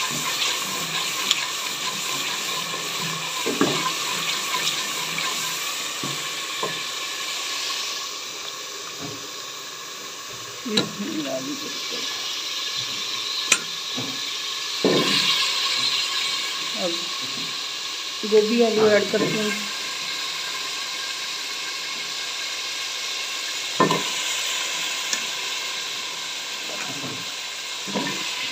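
A wooden spoon scrapes and knocks against a metal pot.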